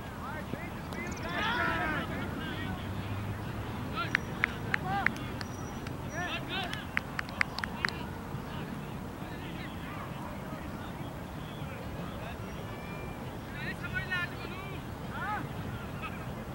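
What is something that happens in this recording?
Men call out across an open field outdoors.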